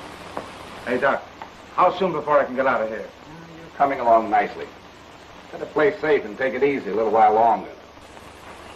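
A man speaks with animation over a hissy old recording.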